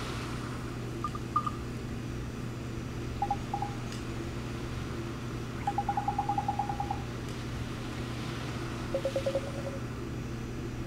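Short electronic blips chirp in quick bursts.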